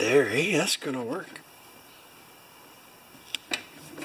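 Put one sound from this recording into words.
Fingers rub a sticker onto a metal surface.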